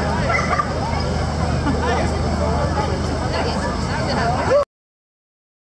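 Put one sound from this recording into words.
A crowd chatters outdoors.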